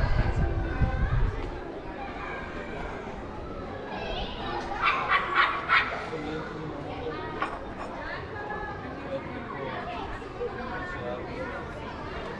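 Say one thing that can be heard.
A crowd of people murmurs in an open square.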